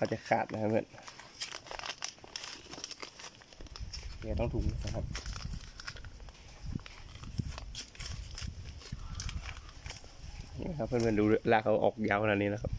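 A plastic plant bag crinkles and rustles as hands pull at it.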